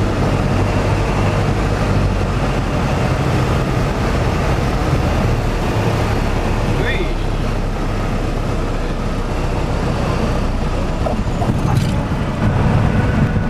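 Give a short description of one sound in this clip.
Wheels rumble over a runway.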